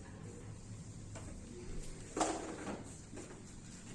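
Cloth rustles and thumps as a child crawls.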